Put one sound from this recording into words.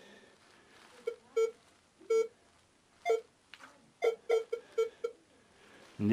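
A metal detector beeps in short bursts.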